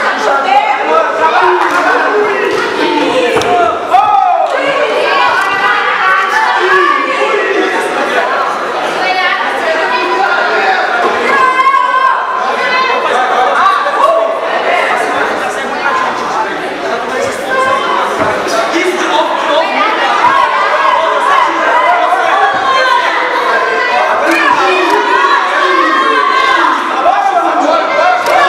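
Men shout loudly and excitedly from close by, with overlapping voices.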